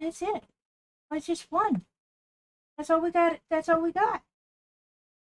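A woman speaks with animation, close to a microphone, in short bursts.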